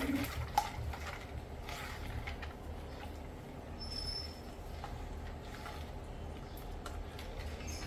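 A spoon stirs liquid in a steel pot.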